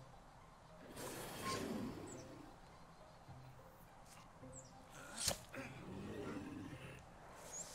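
A weapon strikes a creature with a sharp hit.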